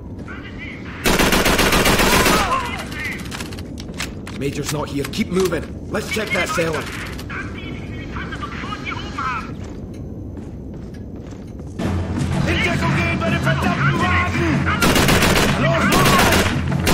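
A submachine gun fires loud rapid bursts close by.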